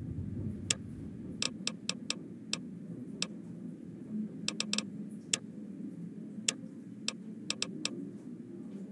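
Short, sharp menu clicks tick at irregular intervals.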